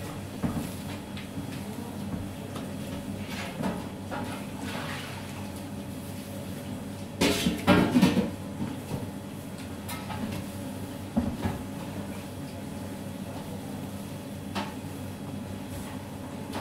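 Hands knead and slap a large lump of soft dough on a metal table.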